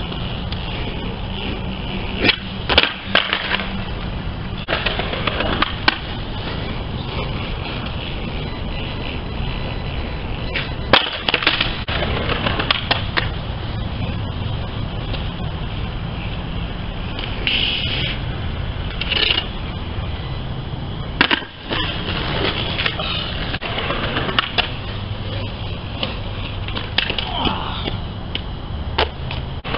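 Skateboard wheels roll and rumble over concrete nearby.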